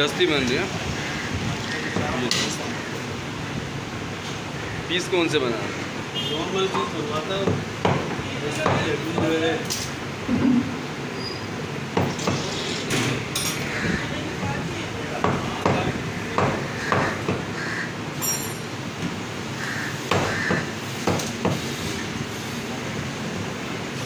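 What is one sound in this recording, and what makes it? A cleaver chops meat on a wooden block with sharp thuds.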